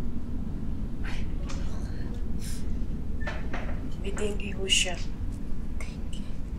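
A woman speaks urgently and upset, close by.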